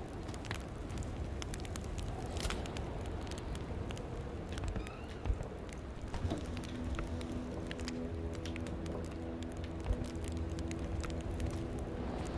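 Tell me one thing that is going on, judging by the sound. A fire crackles in a stove.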